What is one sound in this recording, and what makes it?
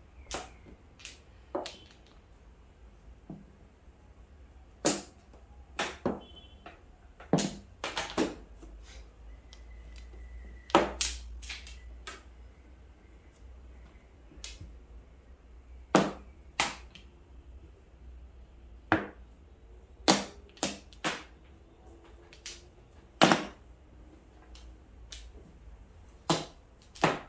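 Plastic tiles clack sharply against each other and tap on a table.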